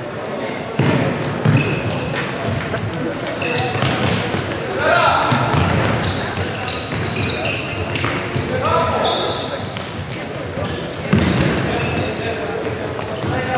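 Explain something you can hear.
A ball is kicked with dull thumps.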